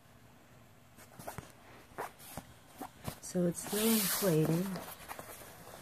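Fabric rustles and crinkles as it is handled close by.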